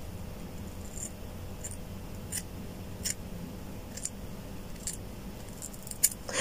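Scissors snip through hair close by.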